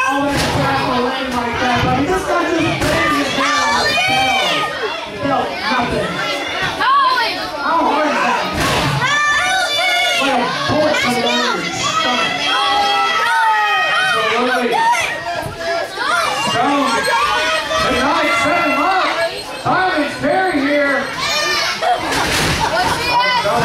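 A crowd cheers and shouts in a large echoing hall.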